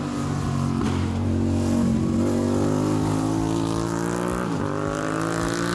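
A motorcycle engine whines loudly as it approaches and passes close by.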